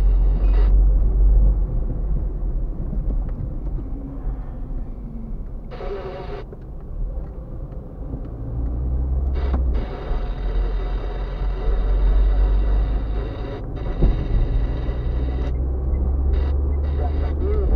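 A car engine hums steadily from inside the cabin as the car drives along a road.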